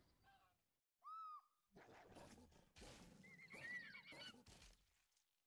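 An eagle screeches shrilly.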